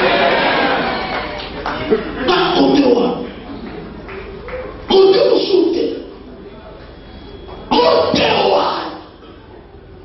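A man preaches forcefully through a microphone in a large echoing hall.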